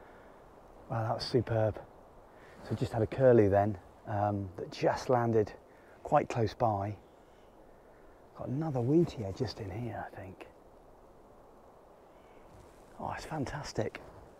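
A man speaks quietly and calmly close by, in short bursts.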